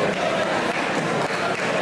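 A referee claps his hands.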